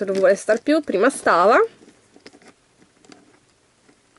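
A plastic capsule is pried open with a click.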